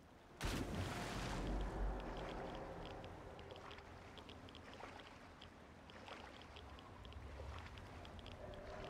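Water sloshes gently with swimming strokes.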